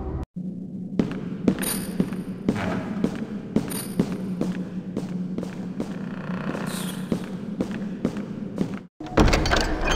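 Footsteps clatter down stone stairs.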